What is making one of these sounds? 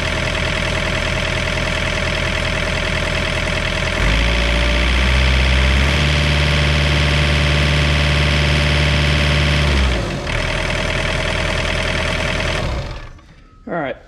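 A diesel engine runs loudly close by, revving up for a few seconds before settling and stopping.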